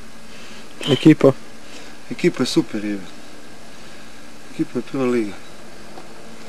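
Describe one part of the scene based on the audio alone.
A man speaks calmly in short phrases close by.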